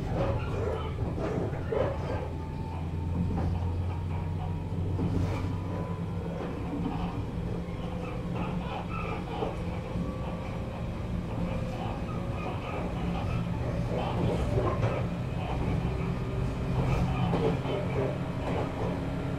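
An electric train motor whines and slowly rises in pitch.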